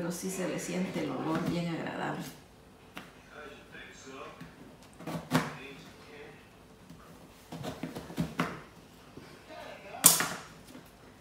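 A knife chops on a cutting board with sharp knocks.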